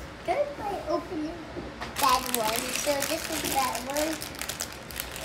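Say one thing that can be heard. A young child talks close by with animation.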